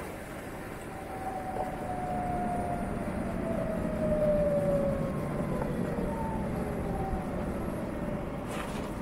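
An electric motorcycle's motor whines and falls in pitch as it slows down.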